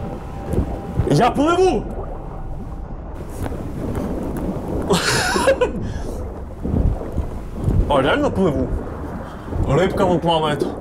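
A young man talks with animation.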